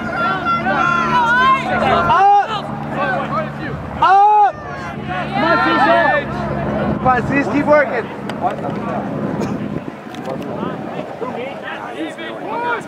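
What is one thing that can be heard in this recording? Young men shout and cheer loudly outdoors.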